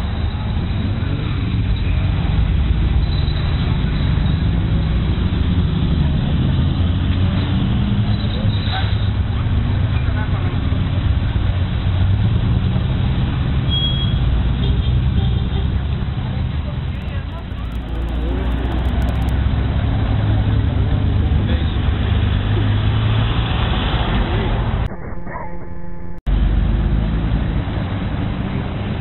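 Car engines rumble as cars drive slowly past.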